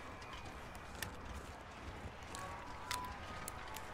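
A flare pistol clicks as it is handled.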